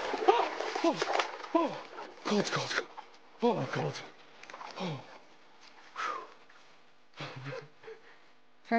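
A young man gasps and exclaims in short bursts.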